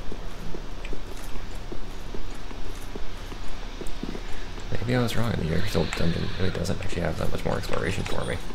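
Armoured footsteps run quickly on stone.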